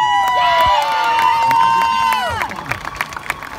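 A marching band's brass plays loud sustained chords outdoors, then falls away.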